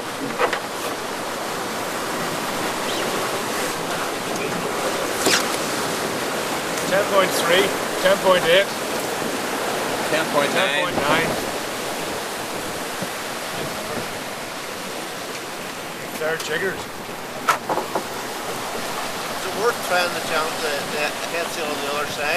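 Waves rush and splash against a boat's hull.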